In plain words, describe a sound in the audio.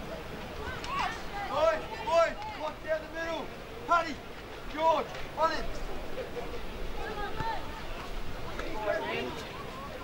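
Young players shout to each other across an open field, heard from a distance.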